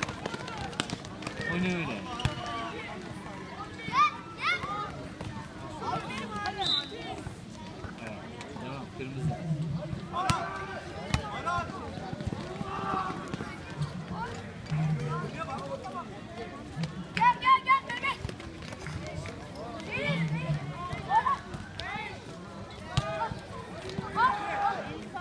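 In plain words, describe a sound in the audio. A basketball bounces on a hard court.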